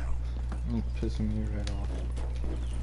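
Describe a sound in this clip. A young man speaks casually close to a microphone.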